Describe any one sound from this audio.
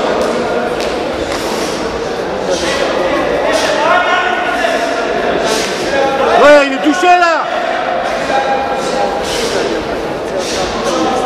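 A crowd of spectators chatters and shouts in an echoing hall.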